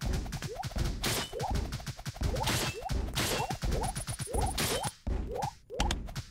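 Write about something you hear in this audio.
Game hits land with quick bright pops and chimes.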